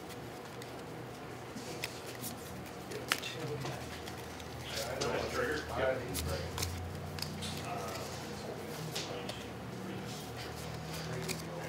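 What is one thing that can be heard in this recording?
Playing cards shuffle and flick softly by hand.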